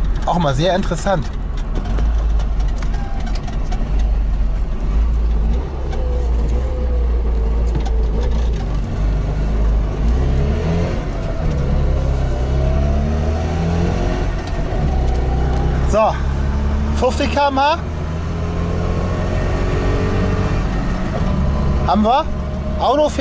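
An old car engine hums and revs up and down as the car drives along.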